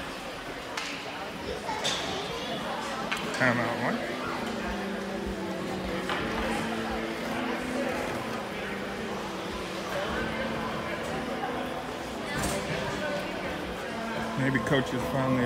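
Ice skates scrape and swish across an ice rink.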